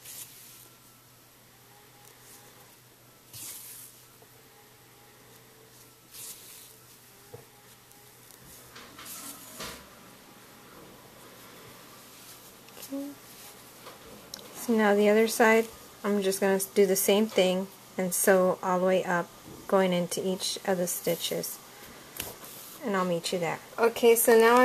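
Yarn rustles softly as fingers handle a piece of crochet.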